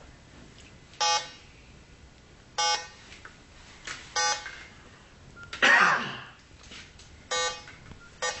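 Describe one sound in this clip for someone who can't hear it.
An electronic detector gives short, loud beeps every second or so.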